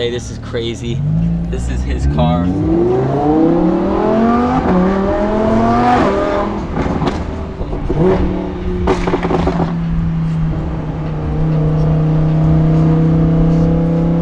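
A sports car engine revs up through its gears and roars.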